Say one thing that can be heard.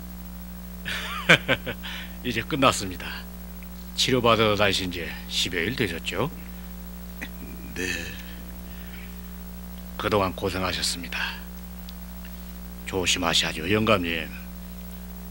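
A middle-aged man speaks warmly and calmly, close by.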